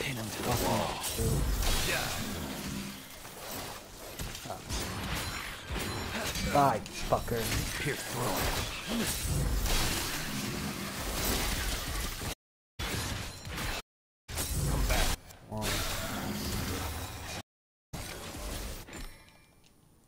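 Sword slashes and heavy impacts crash in a fast fight.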